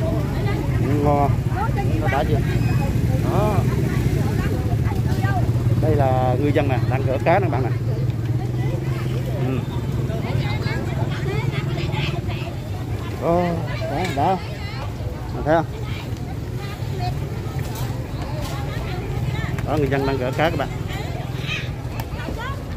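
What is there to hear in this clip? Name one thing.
Adult men and women chat and call out nearby outdoors.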